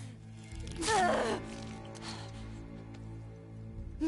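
A young woman groans in pain close by.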